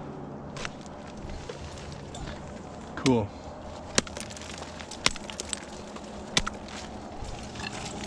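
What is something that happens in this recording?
Ice axes strike and bite into hard ice with sharp thuds.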